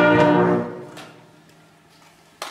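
A brass band holds a final chord that rings out in an echoing hall.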